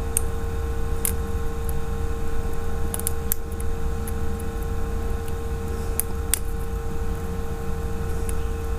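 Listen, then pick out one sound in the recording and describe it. A metal tool clicks and scrapes against a small metal part.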